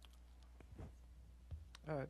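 A man sips water from a plastic bottle.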